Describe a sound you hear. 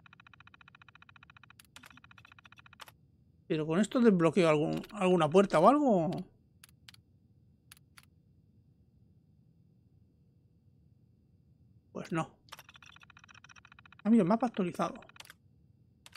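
A computer terminal chatters with rapid electronic beeps as text prints out.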